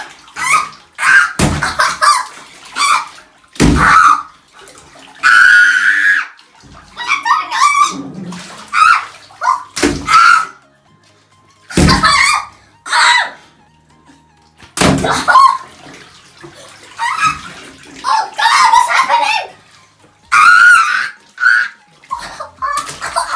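Water balloons squeak and slosh against each other.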